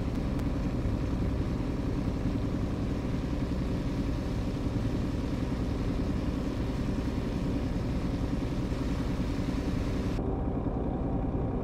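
A diesel truck engine drones while cruising at highway speed.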